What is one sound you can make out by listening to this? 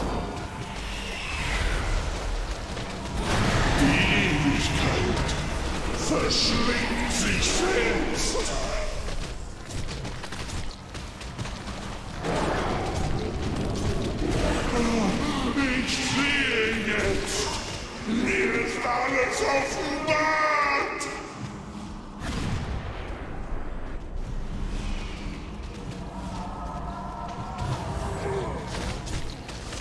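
Magic spells crackle and boom in a busy fight.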